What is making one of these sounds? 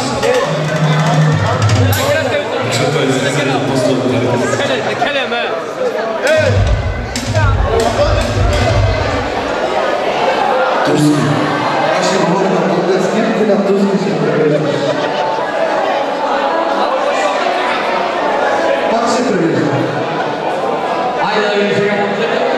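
Loud band music with a clarinet plays in a large echoing hall.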